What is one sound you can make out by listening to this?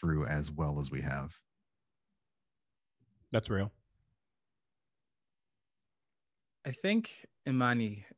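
A man talks with animation over an online call microphone, with pauses between phrases.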